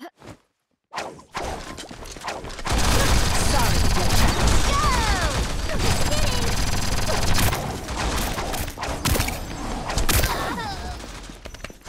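Gunfire and blasts ring out in rapid bursts.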